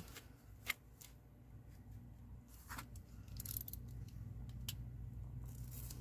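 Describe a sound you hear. A craft knife clicks as its blade is pushed out.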